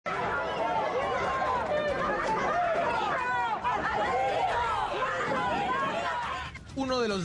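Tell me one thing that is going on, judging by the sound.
A crowd of men and women shouts and jeers loudly outdoors.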